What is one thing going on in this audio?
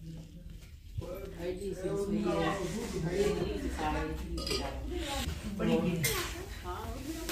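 Two women talk to each other.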